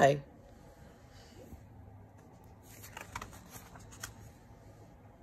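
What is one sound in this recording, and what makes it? Pages of a book turn with a soft papery rustle.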